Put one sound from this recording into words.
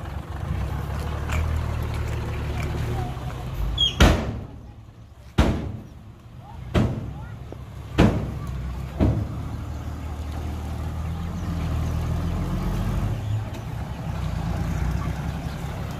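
A truck engine rumbles and idles nearby.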